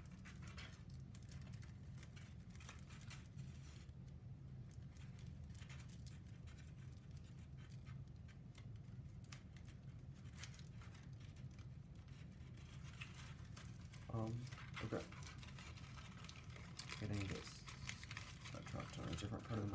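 Paper strips crinkle softly as hands fold them.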